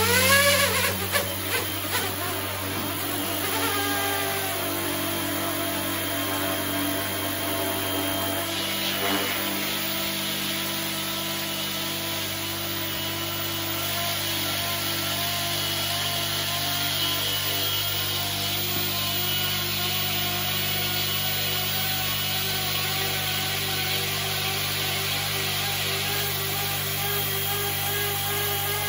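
A small toy helicopter's rotor whirs with a steady electric whine.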